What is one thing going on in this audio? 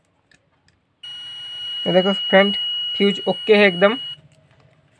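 A multimeter gives a steady beep.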